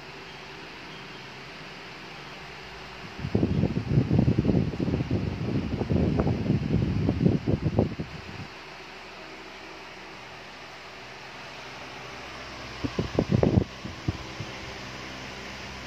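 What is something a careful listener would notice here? An electric fan whirs steadily close by.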